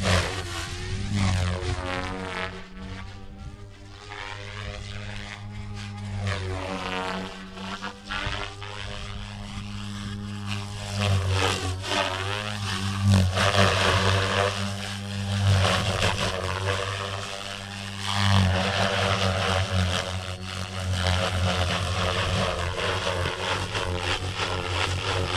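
A model plane's engine whines overhead, rising and falling in pitch as it swoops past.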